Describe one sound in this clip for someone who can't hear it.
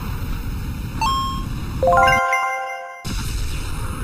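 A bright chime rings out as a car passes through a checkpoint.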